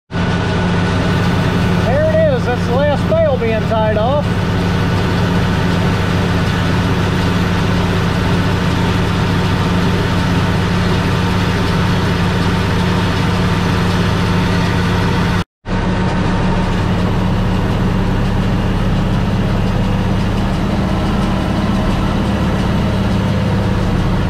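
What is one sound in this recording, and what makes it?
A tractor engine drones steadily up close.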